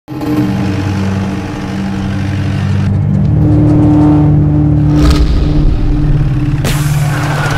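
A vehicle engine rumbles as it drives along.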